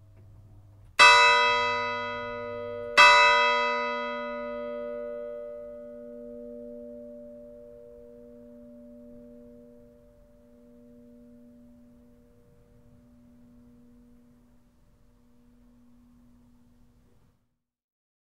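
A large church bell is struck twice and rings out with a long, slowly fading hum.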